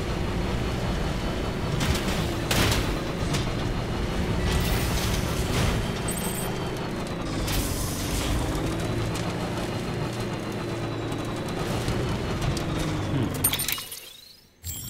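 A vehicle engine drones and whines while driving over rough ground.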